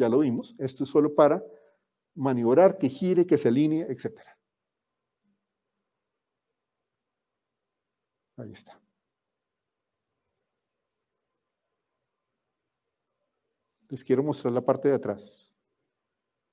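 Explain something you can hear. A man speaks calmly through a microphone, in short bursts with long pauses.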